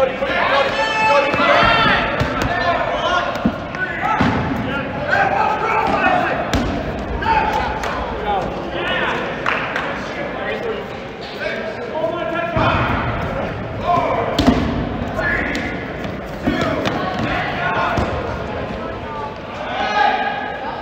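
Young men and women shout and call out across a large echoing gym.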